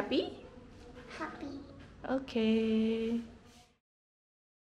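A young girl speaks close by in a high, lively voice.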